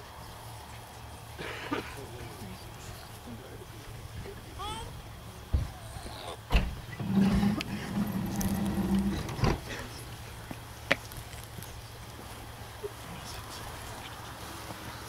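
A crowd of men and women murmurs quietly outdoors.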